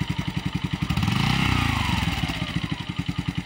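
A motorcycle engine revs up briefly and settles again.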